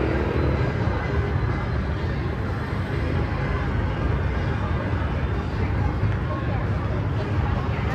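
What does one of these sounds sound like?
A truck engine idles and rumbles nearby.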